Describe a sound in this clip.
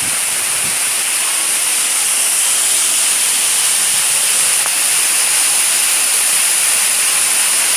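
A waterfall splashes and roars close by in an echoing cave.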